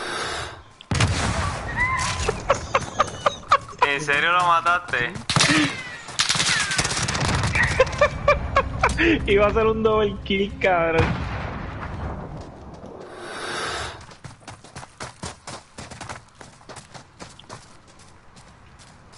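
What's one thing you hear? Rapid gunfire crackles in sharp bursts.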